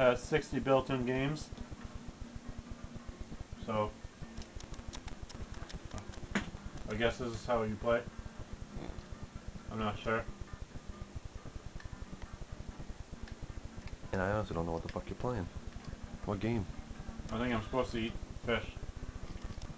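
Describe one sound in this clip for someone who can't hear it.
A man talks casually close by, in short bursts.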